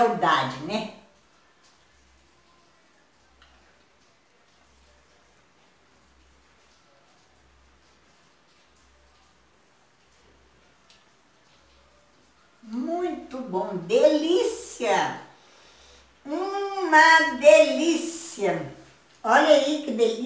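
An elderly woman speaks with animation close by.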